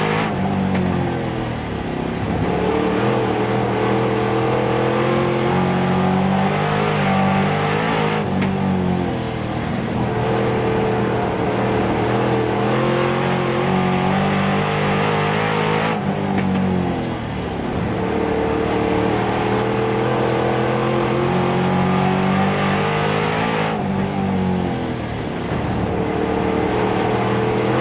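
A race car engine roars loudly from inside the cab, its pitch rising on the straights and dropping into the turns.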